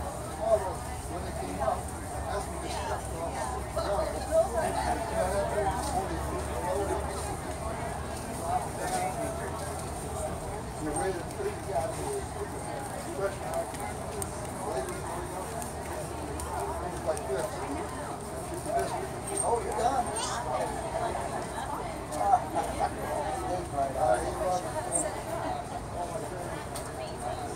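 A stick of charcoal scratches and rubs softly on paper.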